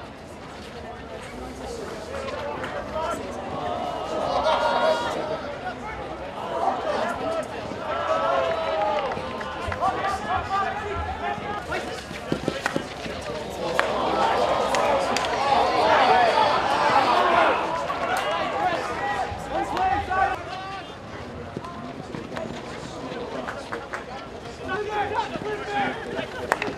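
A hockey stick strikes a ball with a sharp crack.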